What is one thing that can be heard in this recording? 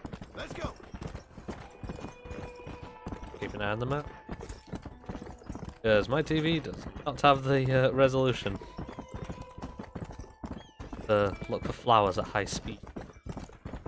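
A horse gallops, its hooves pounding on a dirt track.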